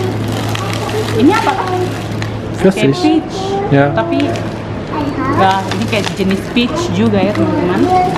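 A plastic fruit package crinkles in a hand.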